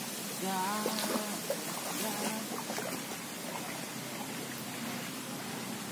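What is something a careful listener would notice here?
Water splashes as a person wades through a shallow stream.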